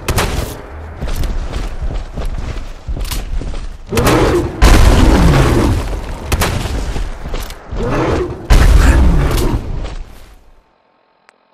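Shotgun blasts boom again and again.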